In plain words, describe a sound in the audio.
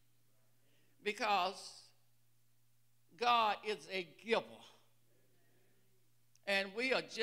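A woman preaches with animation into a microphone, in short bursts with pauses.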